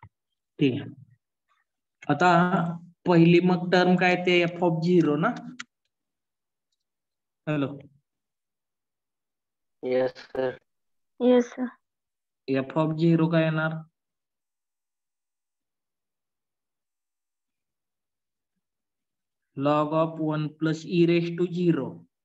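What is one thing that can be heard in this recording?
A man speaks calmly into a microphone, explaining at a steady pace.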